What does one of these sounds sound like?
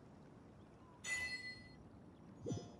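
A short chime sounds.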